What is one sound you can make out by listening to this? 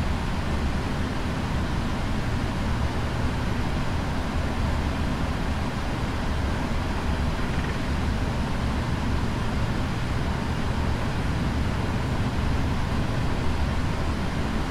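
Jet engines rumble and whine steadily as an airliner taxis.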